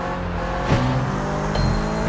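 Car tyres screech on the road.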